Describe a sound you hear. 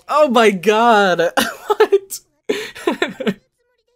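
A young man chuckles softly close to a microphone.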